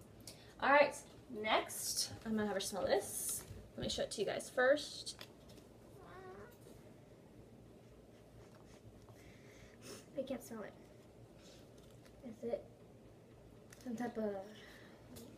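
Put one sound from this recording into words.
A second teenage girl talks and giggles close by.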